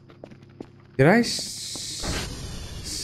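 A heavy metal door slides shut with a mechanical hiss.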